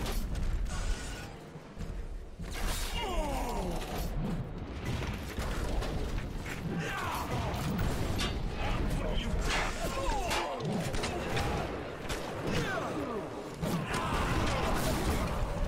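Guns fire in loud bursts.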